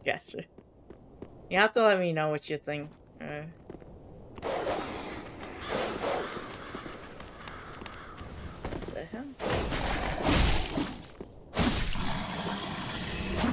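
Footsteps crunch through grass and over stone.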